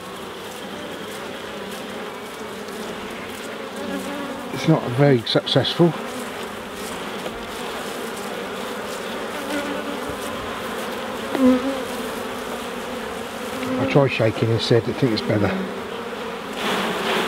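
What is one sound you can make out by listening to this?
Many bees buzz steadily close by.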